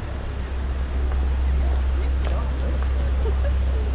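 Pedestrians talk faintly nearby.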